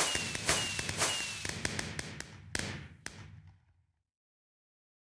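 Fireworks burst with sharp pops and crackle, then fade away.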